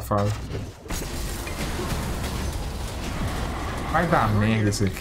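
Magic blasts and explosions crackle in a game.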